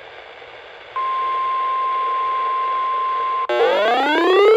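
A radio sounds a long steady tone.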